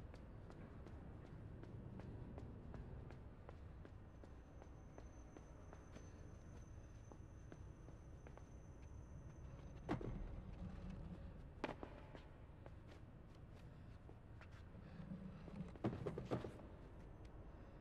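A child's footsteps patter quickly on a hard floor.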